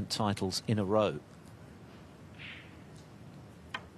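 A snooker cue taps the cue ball.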